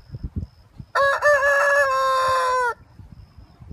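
A rooster crows nearby.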